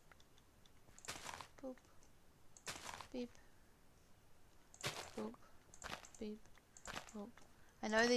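Crops are broken with short, dry rustling crunches.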